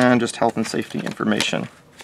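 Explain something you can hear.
A paper booklet rustles as it is lifted.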